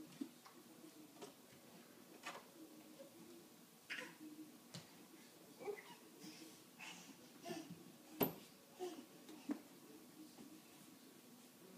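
A baby pats softly on a wall with open hands.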